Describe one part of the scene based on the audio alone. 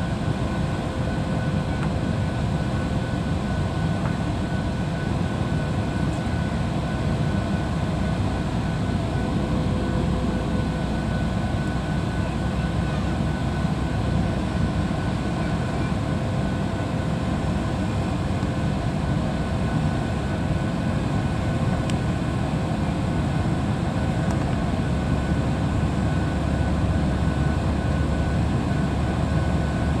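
A jet engine roars steadily, heard from inside an airliner cabin.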